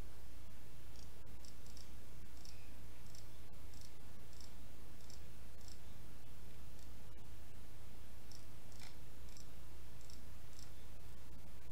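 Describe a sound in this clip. A pickaxe chips repeatedly at stone.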